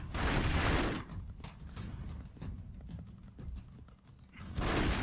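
Gunshots crackle in quick bursts.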